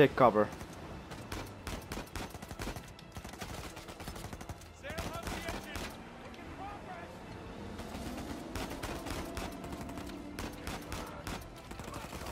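A pistol fires repeated sharp shots.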